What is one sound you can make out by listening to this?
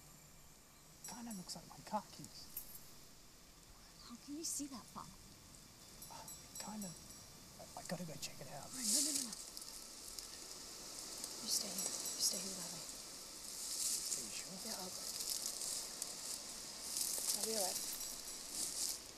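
A young woman speaks tensely and urgently nearby.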